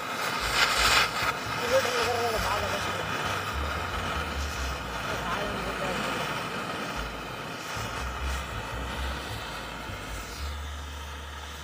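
A burning fuse hisses and sputters steadily.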